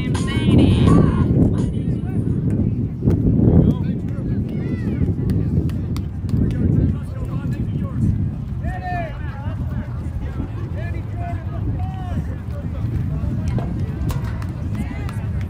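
Young girls call out to each other nearby.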